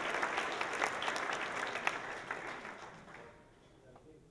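An audience applauds loudly in a large hall and the clapping fades away.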